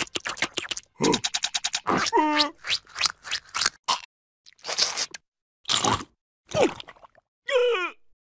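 A cartoon creature babbles and squeaks in a high, silly voice.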